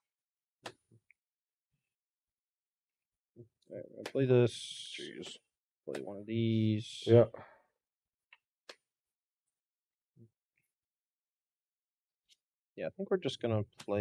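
Playing cards are shuffled by hand.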